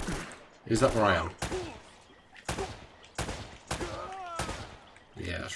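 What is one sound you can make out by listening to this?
Pistol shots ring out one after another.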